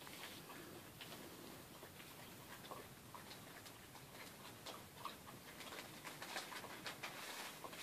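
A puppy's claws tap and scratch on a hard floor.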